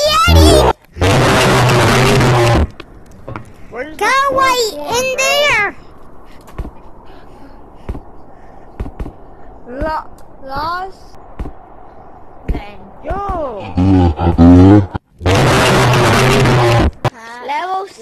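A monster lets out a loud, harsh screeching roar.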